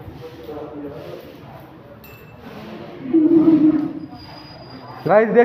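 Young men talk nearby in a room with a slight echo.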